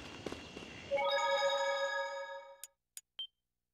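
A bright electronic chime rings out and fades.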